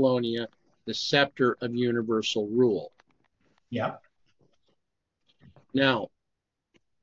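A middle-aged man speaks calmly and close to a microphone, in short phrases with pauses.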